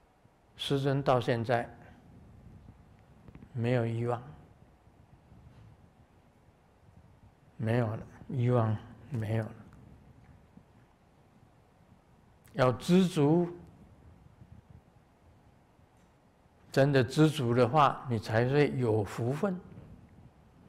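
An elderly man speaks calmly in short phrases with long pauses.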